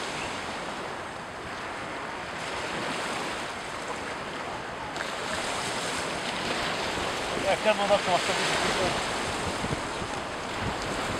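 Small waves wash onto a pebble shore and draw back over the stones.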